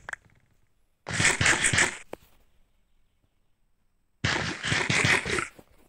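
Bread is crunched and munched in quick bites.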